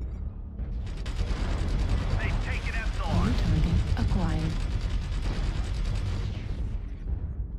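Heavy weapons fire in a loud, steady crackling roar.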